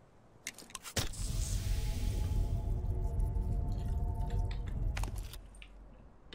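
A healing kit hisses and rattles as it is used.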